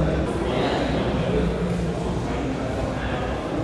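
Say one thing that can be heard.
Several people chatter in the background of a busy hall.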